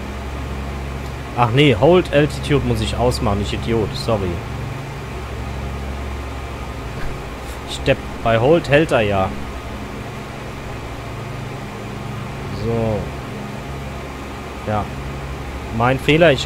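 Aircraft engines drone steadily in a low hum.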